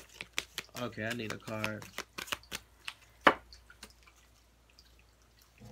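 Playing cards are shuffled, flicking and riffling.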